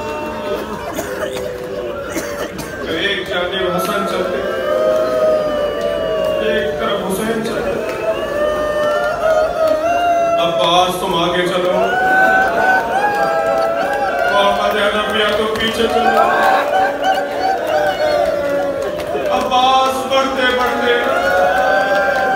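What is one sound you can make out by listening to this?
A middle-aged man recites in a loud, sustained chanting voice through a microphone and loudspeakers, in an echoing room.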